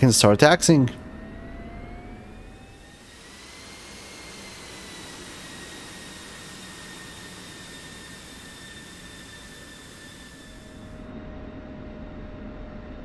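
A jet engine whines steadily at idle.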